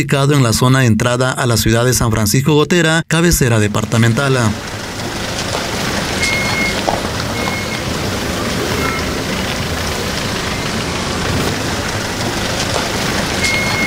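A pickup truck engine rumbles as it drives slowly away over a rough road.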